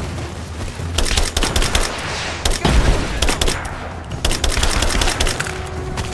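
A rifle fires bursts of rapid shots.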